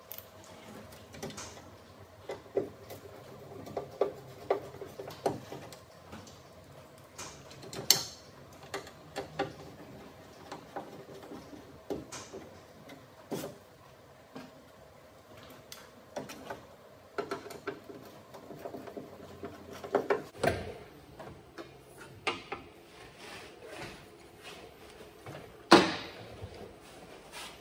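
A metal tool scrapes and taps on a metal panel.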